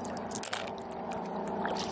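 A hand splashes in shallow water.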